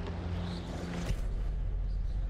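A gas mask knocks against a wooden shelf as it is picked up.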